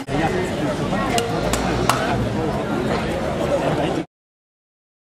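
A crowd of people chatters close by outdoors.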